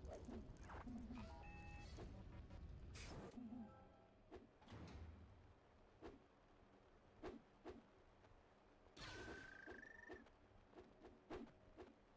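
Video game blaster shots fire and hit with short zaps.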